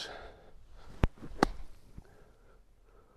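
A golf club thumps into sand and sprays it.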